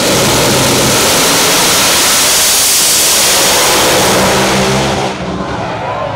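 Drag racing engines roar at full throttle, deafeningly loud.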